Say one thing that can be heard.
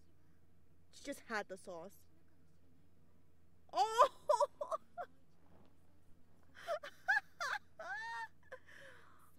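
A young person talks emotionally close to a microphone.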